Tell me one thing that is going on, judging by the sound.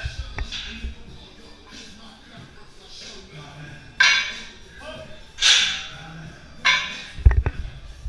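Heavy metal weight plates clank against the floor as a barbell is set down.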